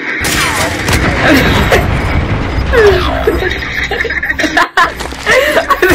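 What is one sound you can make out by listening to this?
Gunfire and explosions crack and boom.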